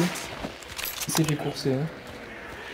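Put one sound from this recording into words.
A rifle bolt clicks and clacks metallically.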